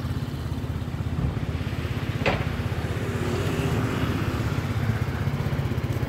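A scooter engine idles nearby with a low, steady putter.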